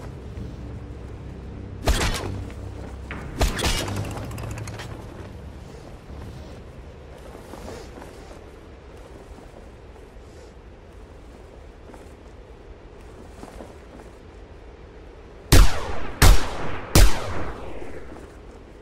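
Wind rushes steadily past during a parachute glide.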